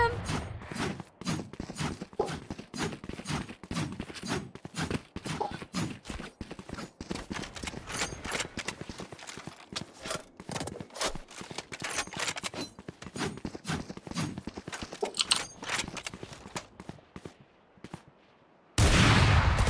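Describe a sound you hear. Footsteps run quickly over hard stone.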